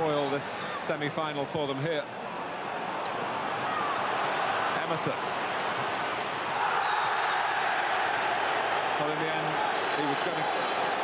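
A large crowd roars steadily in a stadium, swelling louder as play goes on.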